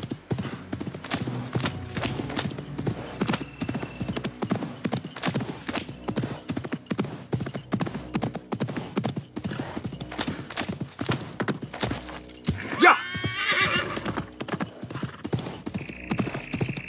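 A horse gallops, its hooves thudding on dry ground.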